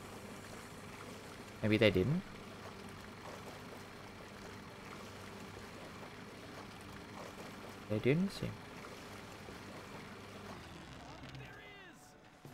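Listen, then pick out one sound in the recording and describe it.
A boat motor drones steadily over water.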